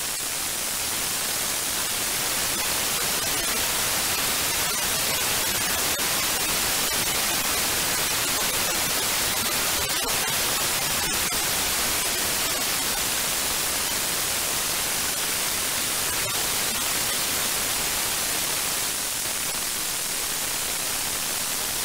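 Radio static hisses steadily, with faint crackles.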